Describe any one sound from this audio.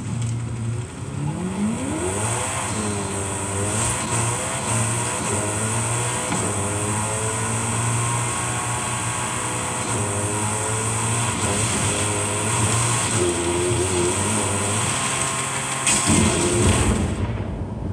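A racing car engine roars and revs up through the gears from a television's speakers.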